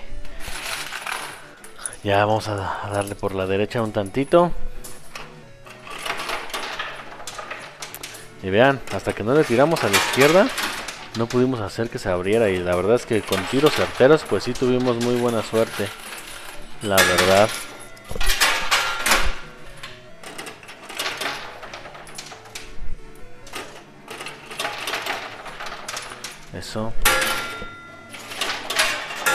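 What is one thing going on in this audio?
Coins drop and clink onto a pile of coins.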